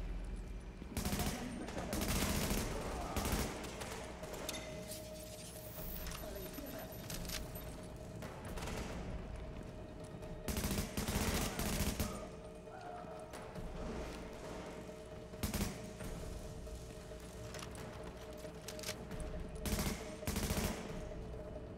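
An assault rifle fires in bursts.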